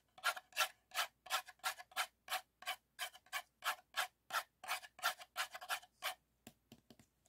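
Fingernails tap and scratch rhythmically on a paper cup.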